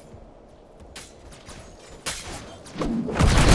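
Energy weapons fire in sharp, loud bursts.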